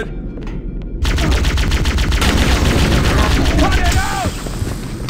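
A game's plasma rifle fires.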